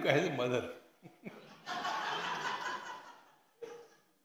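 An elderly man laughs heartily into a microphone.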